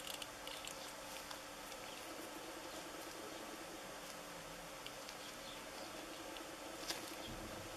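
Rubber gloves rustle and squeak against plastic.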